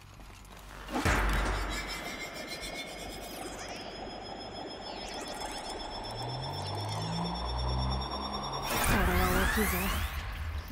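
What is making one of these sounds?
An electronic hum swells and drones with a bright shimmering tone.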